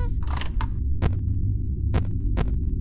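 Sharp clicks sound as buttons are pressed.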